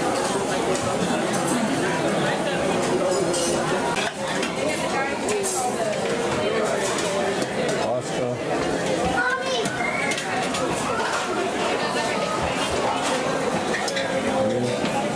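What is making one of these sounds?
A crowd of men and women chatter all around in a busy room.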